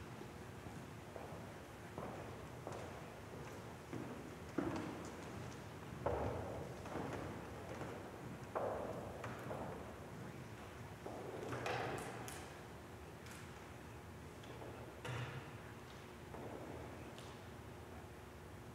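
A man speaks calmly from a distance, echoing in a large hall.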